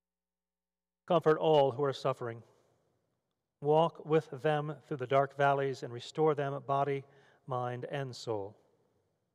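A man reads out calmly through a microphone.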